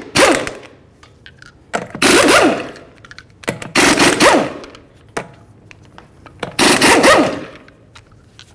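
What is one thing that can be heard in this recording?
An impact wrench whirs and rattles in short bursts.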